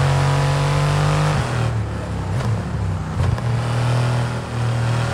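A Formula One car engine drops in pitch as the car slows and downshifts.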